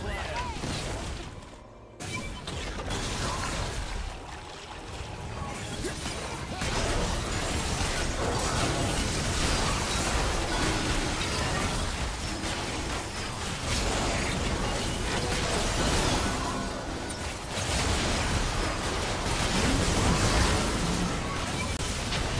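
Magic spells crackle, whoosh and blast in a fast, busy fight.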